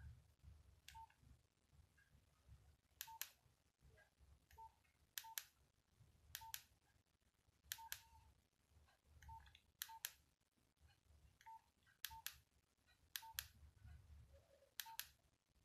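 A phone beeps softly with each key press.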